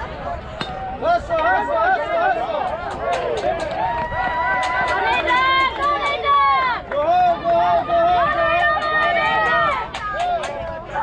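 Children shout and cheer loudly close by, outdoors.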